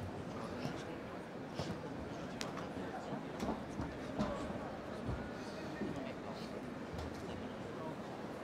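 Punches thud against a boxer's body and gloves.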